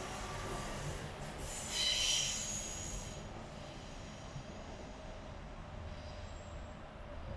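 A train rumbles across a bridge in the distance.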